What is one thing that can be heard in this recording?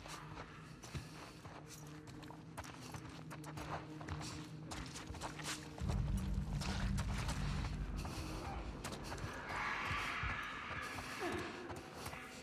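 Footsteps shuffle and tap across a hard floor.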